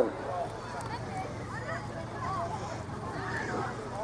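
A crowd of people chatters faintly in the distance outdoors.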